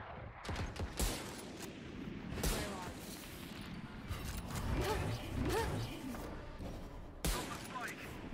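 Rifle shots crack sharply, now and then.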